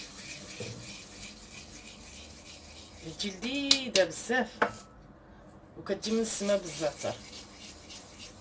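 Hands rub against each other.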